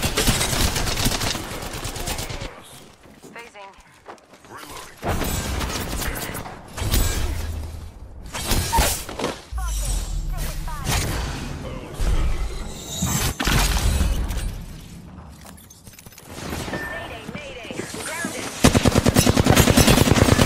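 Rapid automatic gunfire rattles in a video game.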